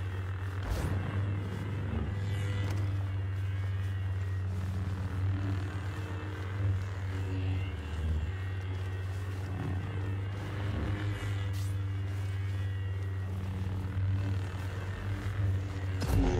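Lightsabers hum steadily.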